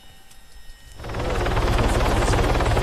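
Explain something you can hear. Helicopter rotor blades thump loudly and rapidly.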